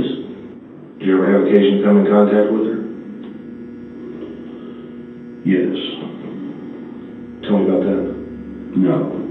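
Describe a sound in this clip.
A man asks questions in a calm voice nearby.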